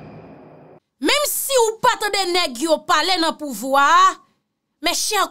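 A young woman talks animatedly into a microphone close by.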